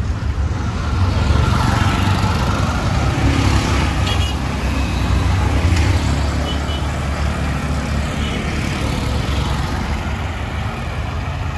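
Three-wheeled motor taxis putter past nearby.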